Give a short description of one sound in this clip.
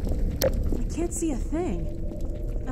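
A creature groans and gurgles close by.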